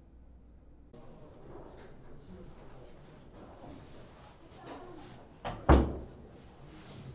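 An older man speaks quietly and calmly nearby.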